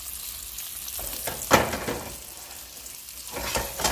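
A frying pan scrapes across a metal stove grate.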